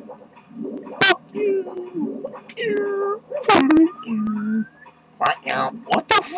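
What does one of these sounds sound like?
Water splashes and sloshes in a video game.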